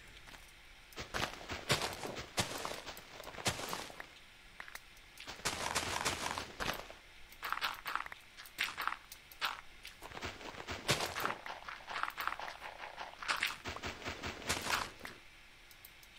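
Dirt and gravel crunch as blocks are dug out one after another.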